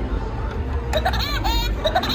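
A toy tram plays a burst of high electronic chirps.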